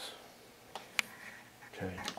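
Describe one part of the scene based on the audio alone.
A button on a balance clicks as it is pressed.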